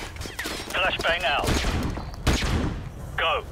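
A gunshot bangs and echoes off metal walls.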